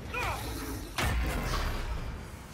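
Lightning crackles with a sharp burst.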